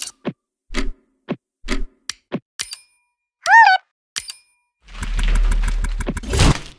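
Short electronic game sound effects pop and blip.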